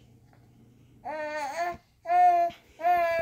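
A baby squeals loudly and happily in short bursts.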